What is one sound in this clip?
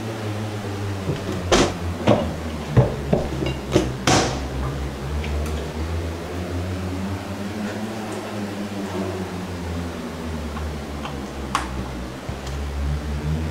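Cabinet doors and objects knock and clatter on a counter.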